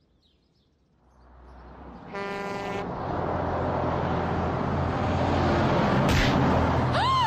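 A large truck rumbles loudly past.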